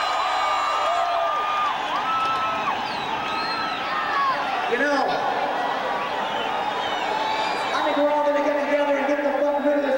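A rock band plays loudly with drums and guitars.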